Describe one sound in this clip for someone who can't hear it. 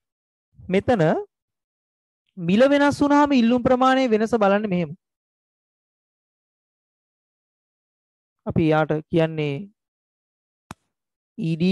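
A young man speaks calmly and clearly into a close microphone, in short bursts with pauses.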